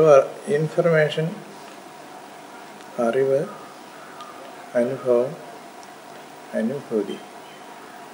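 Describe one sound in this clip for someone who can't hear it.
An elderly man speaks slowly and hoarsely in short phrases close by, with pauses between them.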